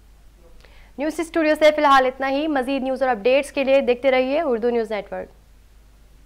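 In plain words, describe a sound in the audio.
A young woman reads out the news calmly through a microphone.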